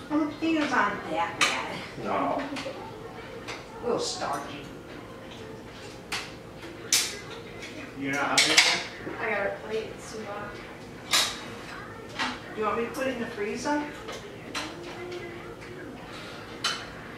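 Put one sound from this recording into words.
Several adults talk casually nearby.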